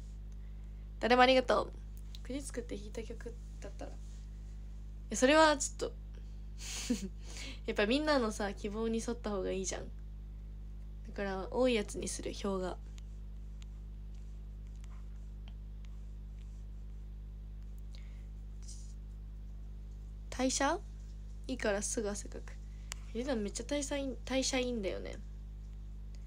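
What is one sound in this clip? A young woman speaks close to a microphone, in short bursts with pauses.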